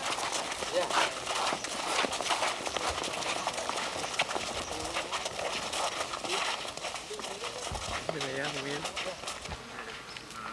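Roller skate wheels roll and scrape on pavement.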